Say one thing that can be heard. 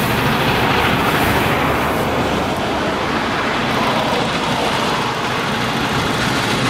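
A steam locomotive chugs heavily as it approaches.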